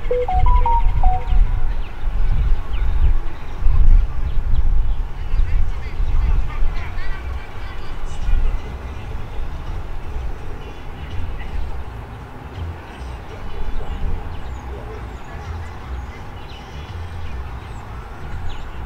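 Wind rumbles across an open outdoor field.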